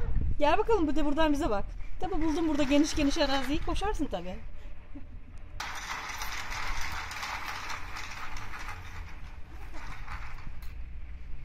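The wheels of a plastic baby walker roll over a tiled floor.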